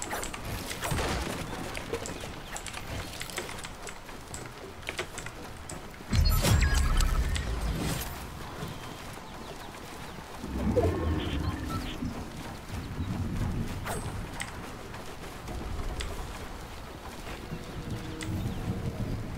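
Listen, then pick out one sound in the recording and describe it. Wooden panels snap into place with quick knocks.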